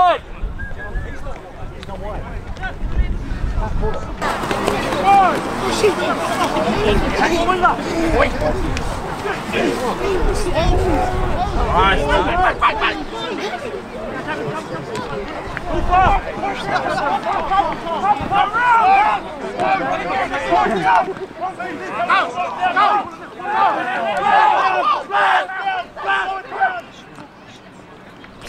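A crowd of spectators cheers and talks nearby.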